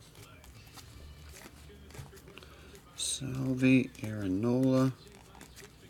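Trading cards rustle and flick softly between fingers.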